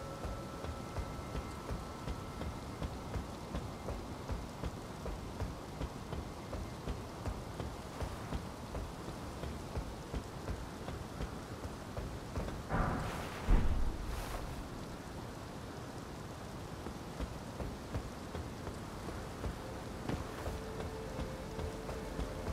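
Quick footsteps patter across a stone roof.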